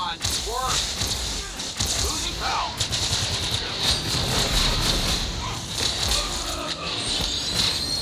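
Sword strikes and magic blasts crash and whoosh in quick succession.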